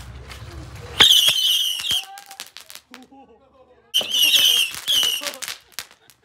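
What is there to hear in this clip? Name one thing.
Firecrackers whistle shrilly as they fizz and spin on the ground.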